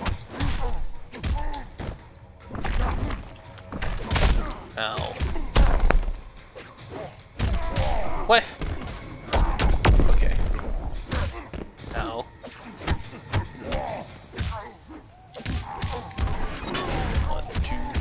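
Punches and kicks land with heavy thuds and sharp smacks.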